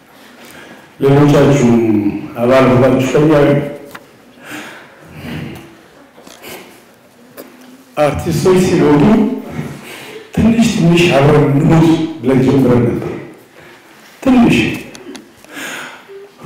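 An elderly man sings slowly into a microphone.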